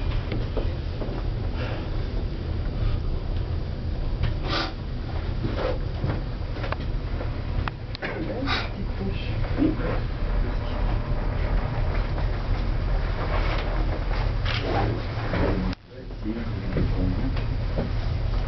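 A cable car hums and rumbles steadily as it rides along its cable.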